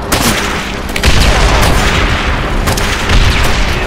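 A loud explosion booms and roars.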